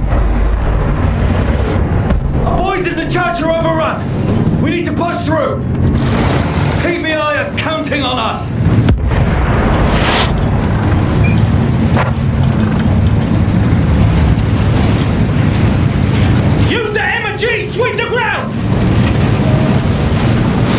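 A battle rumbles with heavy, continuous booming.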